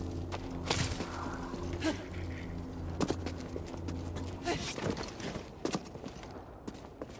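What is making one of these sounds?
Footsteps scuff quickly on rock.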